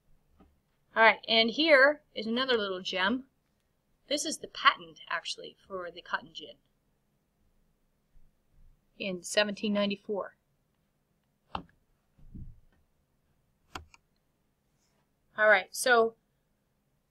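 A woman speaks calmly and close into a computer microphone, in short phrases with pauses.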